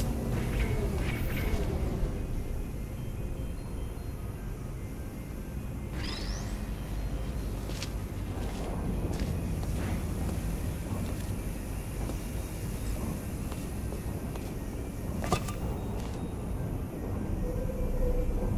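A laser beam hums steadily.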